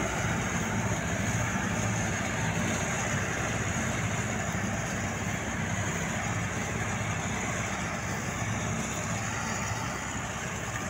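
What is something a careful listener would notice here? A combine harvester engine drones steadily nearby.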